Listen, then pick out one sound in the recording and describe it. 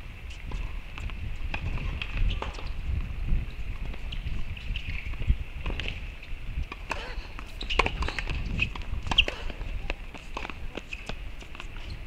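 Tennis balls are struck with a racket in a sharp pop.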